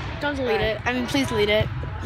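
A teenage boy talks close to the microphone.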